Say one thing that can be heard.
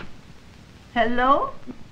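An elderly woman speaks into a telephone.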